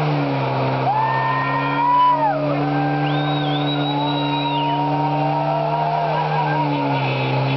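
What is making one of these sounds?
Tyres squeal sharply as they spin on the spot.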